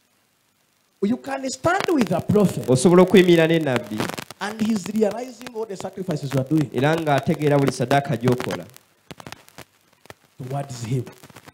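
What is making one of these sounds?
A young man speaks with animation into a microphone, heard through a loudspeaker in an echoing room.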